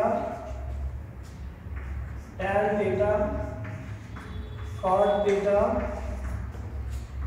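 A man speaks calmly in a slightly echoing room.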